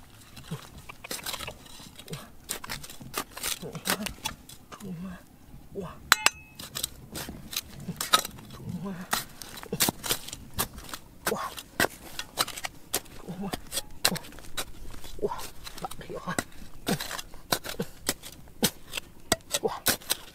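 A small metal trowel scrapes and digs into dry, stony soil.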